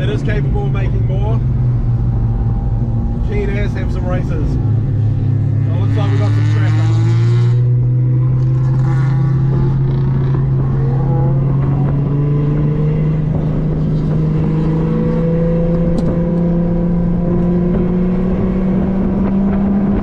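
A car engine hums inside the cabin, its pitch rising steadily as the car speeds up.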